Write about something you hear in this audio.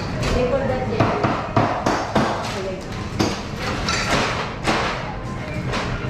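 Metal cups and tools clatter and knock against a counter.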